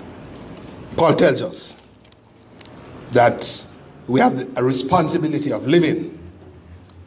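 An elderly man speaks slowly and solemnly into a microphone, heard through a loudspeaker in an echoing room.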